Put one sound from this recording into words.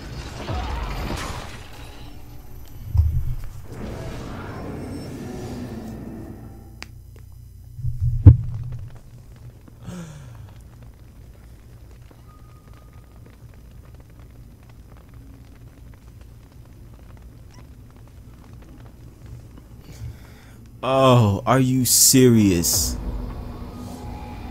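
A monstrous creature shrieks and growls loudly.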